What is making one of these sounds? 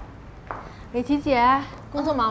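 A young woman speaks brightly and clearly.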